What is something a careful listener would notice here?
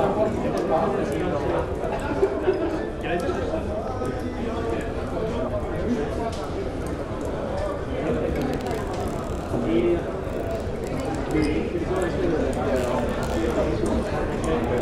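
A crowd of men and women chatter and murmur indoors.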